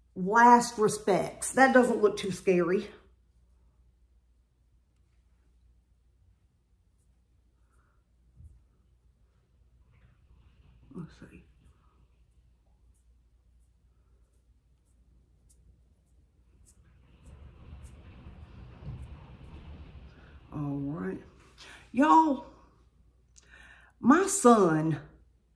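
A middle-aged woman talks calmly and close to a microphone.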